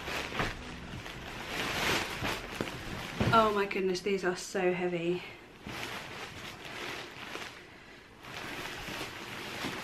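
Fabric rustles as a woman handles it.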